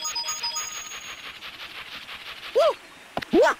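Quick footsteps patter on a path.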